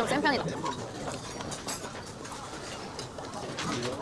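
A young woman chews food close to a microphone.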